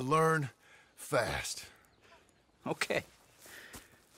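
A man speaks calmly in a low voice nearby.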